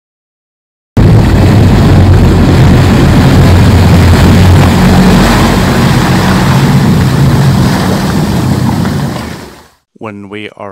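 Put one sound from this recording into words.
A boat's bow wave rushes and foams loudly through the water.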